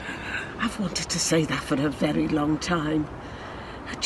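An elderly woman speaks calmly and gently close by.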